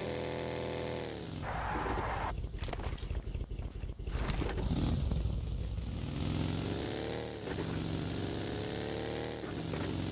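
A dune buggy engine revs as it drives.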